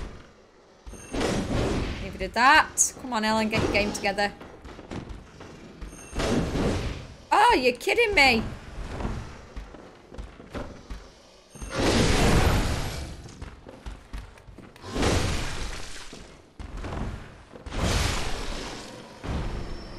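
A heavy weapon swings and strikes with loud whooshing thuds.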